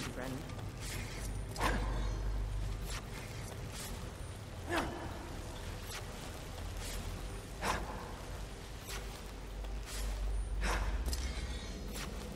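Footsteps thud on wooden planks and dirt.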